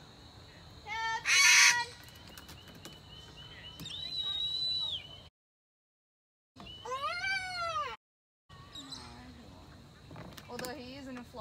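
Cockatoos screech loudly overhead.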